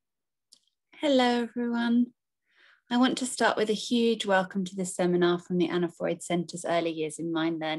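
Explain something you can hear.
A woman speaks through an online call.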